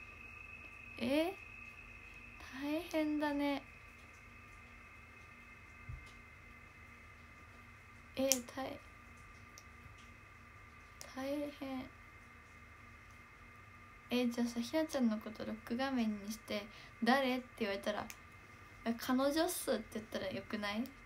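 A young woman speaks softly and cheerfully close to a microphone, in short bursts with pauses.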